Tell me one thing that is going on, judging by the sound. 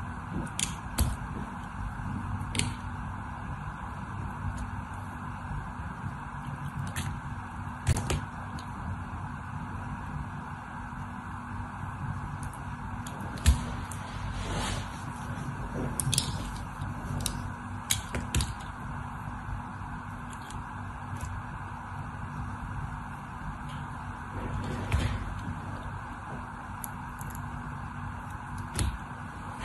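A blade shaves and slices through soft soap with crisp scraping sounds.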